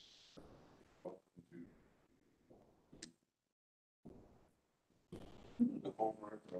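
A man speaks calmly into a microphone in a large, echoing room, heard over an online call, with short pauses.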